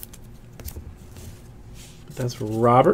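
Foil packs crinkle and rustle as hands handle them close by.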